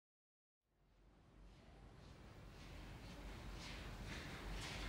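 Footsteps walk along a hard floor.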